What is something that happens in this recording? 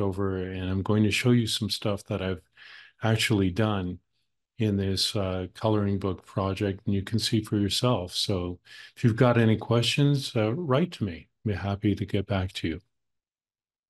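An older man talks calmly and steadily into a microphone, as if on an online call.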